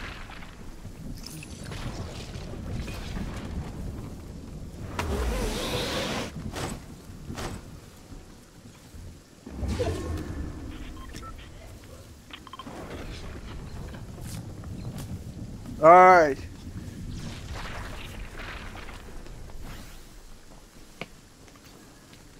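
Footsteps patter quickly across leaves and stone.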